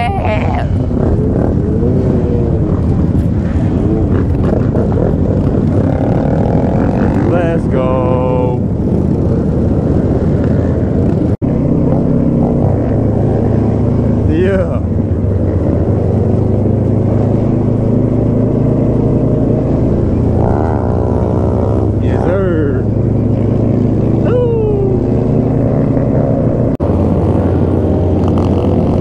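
Many motorcycles roar and rev nearby, their engines rising and falling in pitch.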